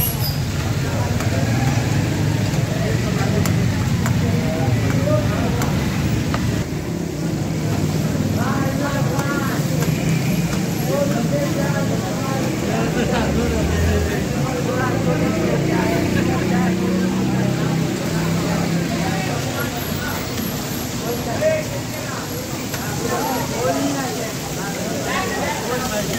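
Kebabs sizzle as they deep-fry in hot oil.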